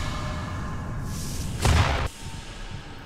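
A magic portal opens with a loud whoosh.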